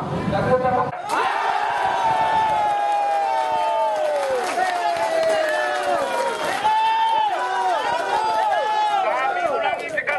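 A man shouts through a megaphone.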